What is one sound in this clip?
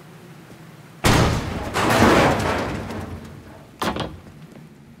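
A metal grate clatters and scrapes loudly as someone climbs through.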